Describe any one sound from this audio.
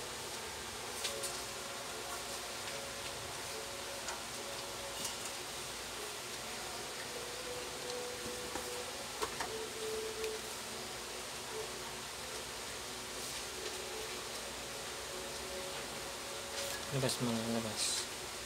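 Wire rustles and scrapes against metal.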